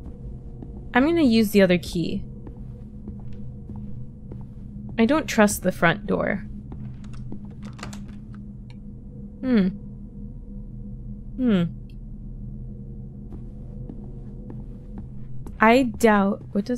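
A young woman speaks with animation into a close microphone, her voice rising high in bursts.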